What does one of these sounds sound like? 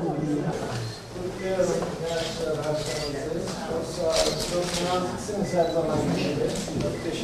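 A man speaks warmly up close.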